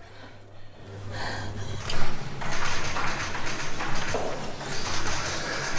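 Keys clatter on an electric typewriter.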